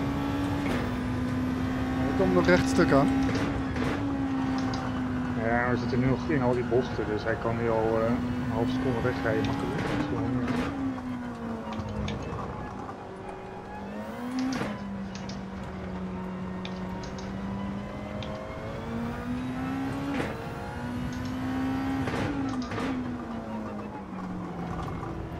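A racing car engine roars, its pitch rising and falling through gear changes.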